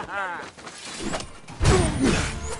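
A sword swings and clashes in combat.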